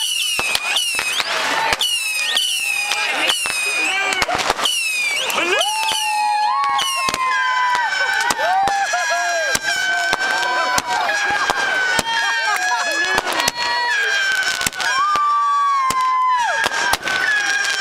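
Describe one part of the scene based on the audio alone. Fireworks bang and crackle sharply, again and again.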